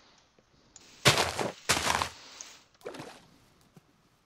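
A young woman speaks into a headset microphone in short bursts.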